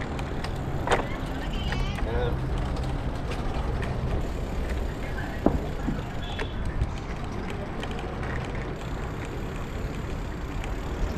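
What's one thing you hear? A bicycle rolls over paving stones with a low rumble.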